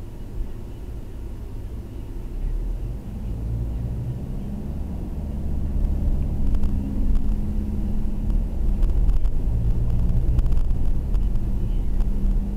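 A car engine hums steadily from inside, rising as the car speeds up.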